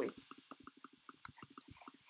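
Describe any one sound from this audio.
A sword strikes a squid with soft thuds.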